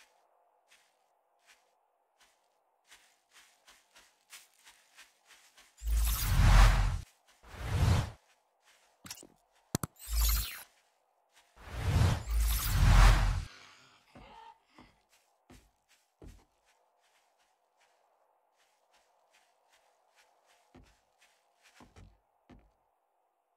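Footsteps tread steadily over grass and wooden boards.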